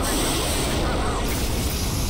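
Static hisses loudly and steadily.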